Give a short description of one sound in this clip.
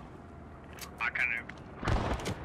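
A rifle's metal parts click and rattle as it is handled.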